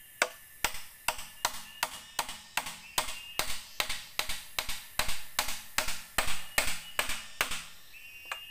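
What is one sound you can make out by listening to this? A blade chops at wood with quick, steady knocks.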